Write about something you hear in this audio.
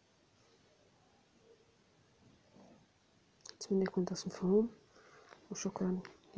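Fabric rustles softly under fingers.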